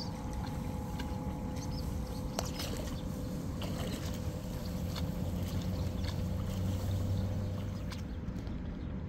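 Rice seedlings rustle and swish as they are pulled from wet soil close by.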